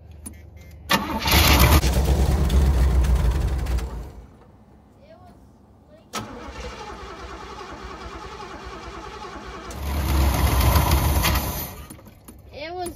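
A car engine starts and revs loudly.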